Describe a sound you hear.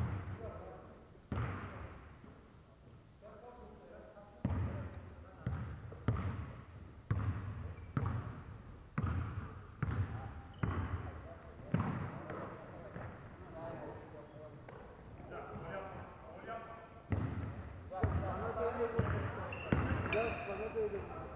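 A basketball bounces on a wooden floor, echoing through a large hall.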